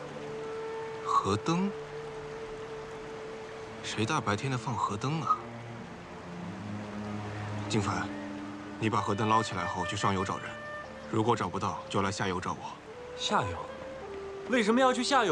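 A second young man answers in a low, calm voice.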